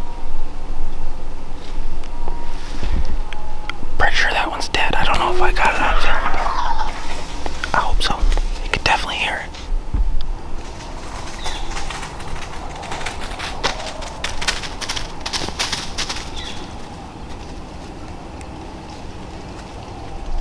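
Wind blows softly outdoors.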